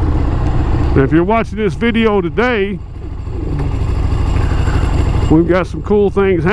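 A motorcycle engine revs up and down sharply.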